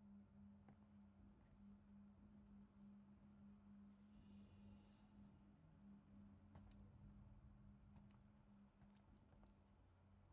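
A low machine hum drones steadily.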